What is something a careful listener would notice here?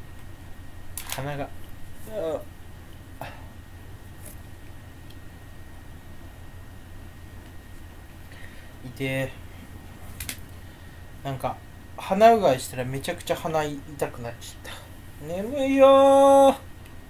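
A young man talks close to a microphone in short, animated bursts.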